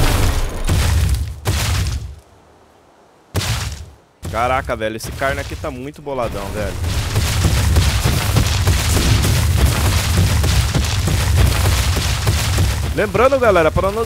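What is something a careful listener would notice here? A large creature's heavy footsteps thud steadily on the ground.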